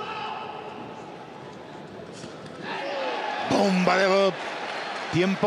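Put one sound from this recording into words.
A large crowd murmurs and cheers in an echoing arena.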